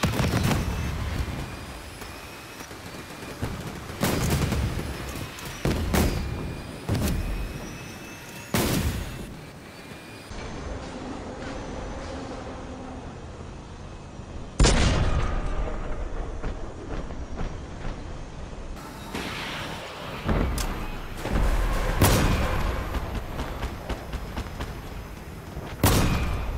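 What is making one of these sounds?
Cannon shots boom and echo.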